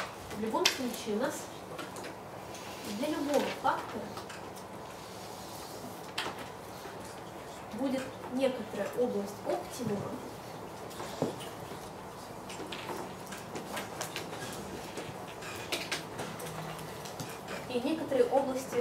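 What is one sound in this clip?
A man lectures calmly in an echoing room, in short bursts with pauses.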